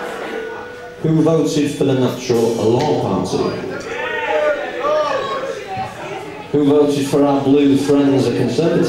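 Drums beat along with the band.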